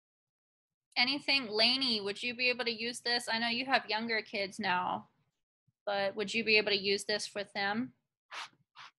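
A young woman speaks animatedly over an online call.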